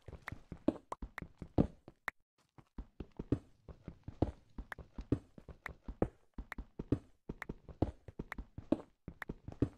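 A pickaxe chips rapidly at stone with quick, repeated taps.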